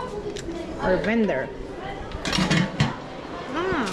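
A metal lid clatters on a pot.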